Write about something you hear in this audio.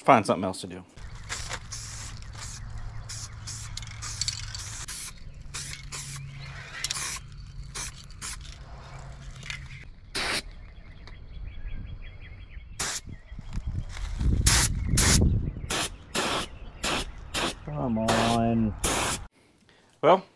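A paint sprayer hisses steadily.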